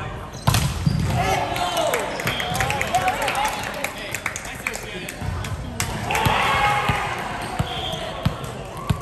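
Young men call out and shout to each other during play.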